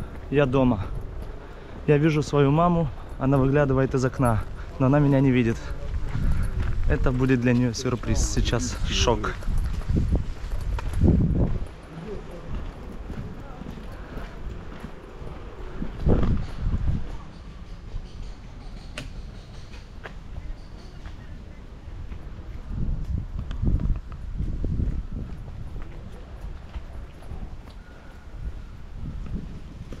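Wind buffets a microphone outdoors.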